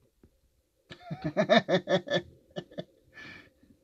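A man laughs loudly, close to a headset microphone.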